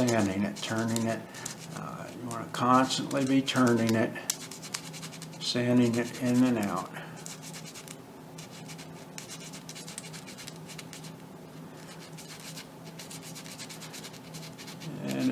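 A thin stick scrapes lightly against wood.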